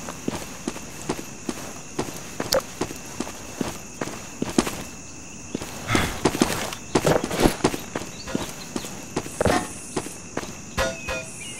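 Footsteps crunch steadily over dry grass and dirt.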